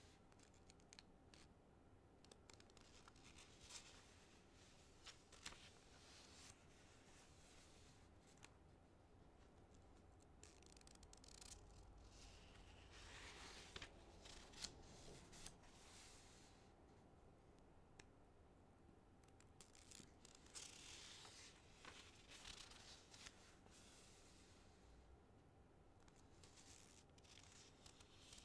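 Large wings flap in rushing air.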